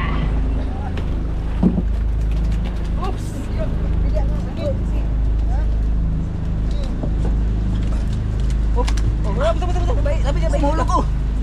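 Wooden frames knock against a boat deck.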